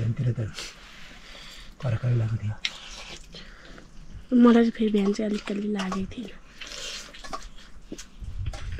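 A man slurps noodles noisily up close.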